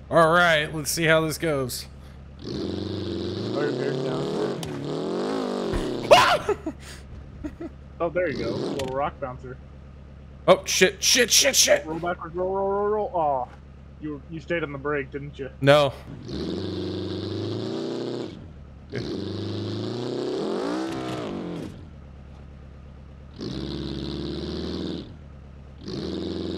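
An engine revs and roars in bursts.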